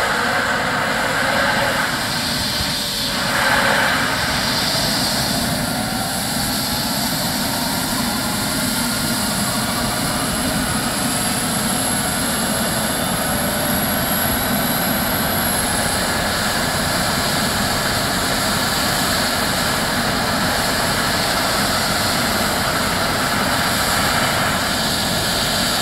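A helicopter engine whines steadily nearby as the rotor spins and thumps.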